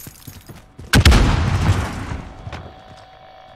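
An explosion booms and rumbles nearby.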